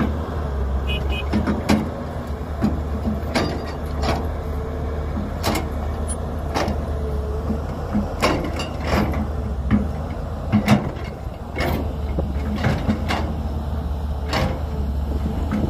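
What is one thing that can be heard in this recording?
An excavator bucket scrapes and clanks against the ground.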